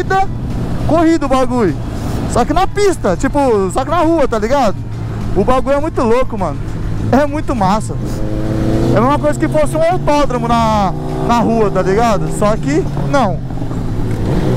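A motorcycle engine revs sharply in quick bursts close by.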